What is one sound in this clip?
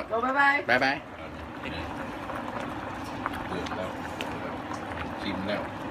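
Soup bubbles and simmers in a pan.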